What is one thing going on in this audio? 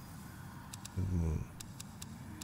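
A man speaks briefly and calmly, close to a microphone.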